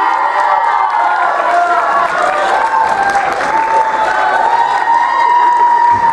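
A young man sings through a microphone in a large hall.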